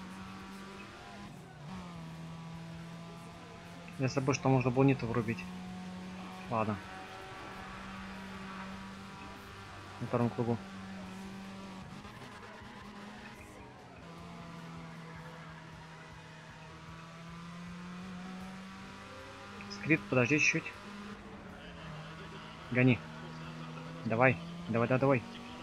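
A car engine revs at speed, shifting through the gears.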